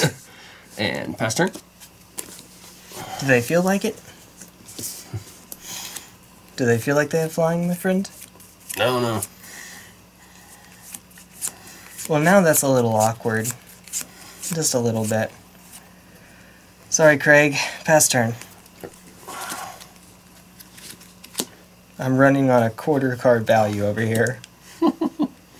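Playing cards tap onto a soft mat.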